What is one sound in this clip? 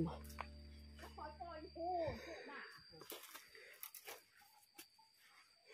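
Footsteps rustle and crunch through dry leaves and undergrowth.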